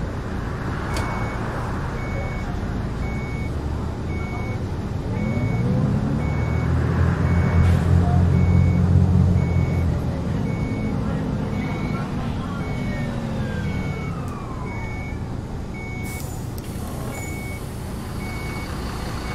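A steady beeping ticks inside the bus.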